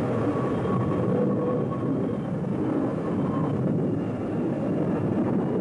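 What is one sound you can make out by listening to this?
A jet aircraft roars as it skids along a runway.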